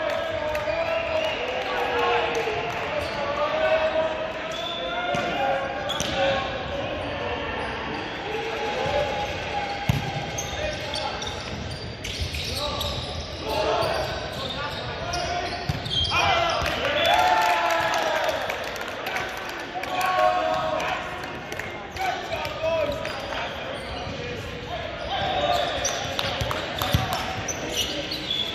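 Young men call out to each other across a large echoing gym.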